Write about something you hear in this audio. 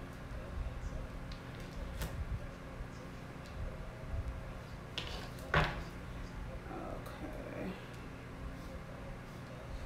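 Cards tap softly on a table.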